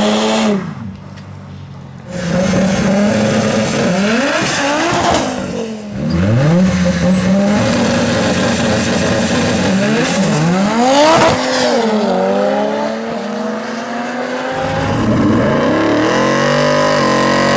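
Car engines rev hard and roar past at high speed.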